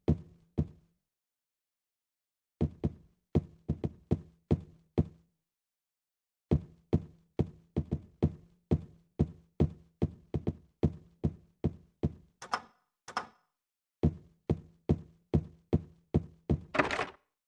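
Footsteps walk quickly across a hard floor.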